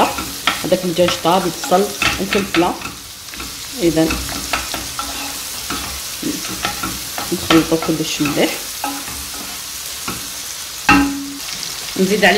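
A wooden spatula stirs and scrapes food in a pan.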